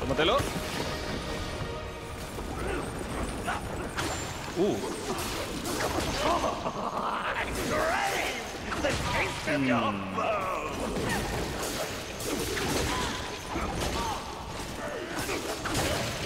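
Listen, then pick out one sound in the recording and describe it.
Sword blows clash and thud in a fight.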